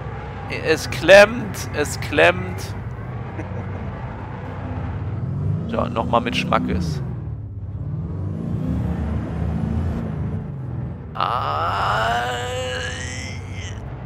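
A large spacecraft hums with a deep, throbbing drone overhead.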